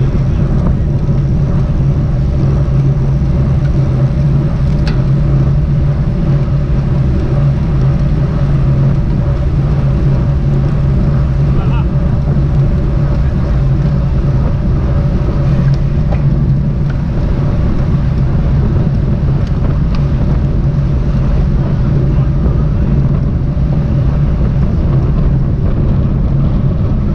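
Wind rushes loudly past, buffeting steadily.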